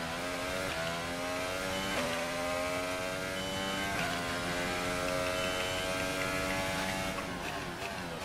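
Spray hisses from wet tyres on the track.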